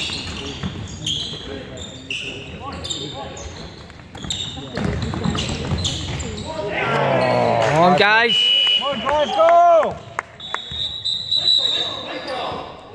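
Sports shoes squeak on a wooden court in an echoing hall.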